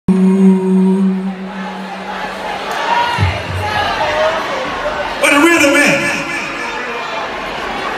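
A man speaks loudly through a microphone over loudspeakers in a large echoing hall.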